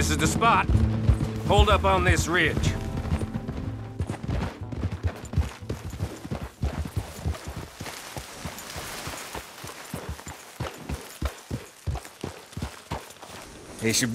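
Horse hooves clop steadily on dirt and grass.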